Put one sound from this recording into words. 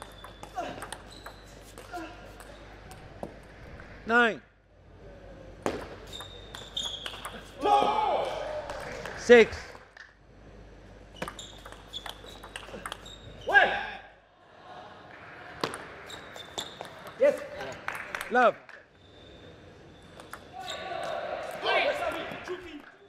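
A table tennis ball clicks sharply off bats and the table in quick rallies.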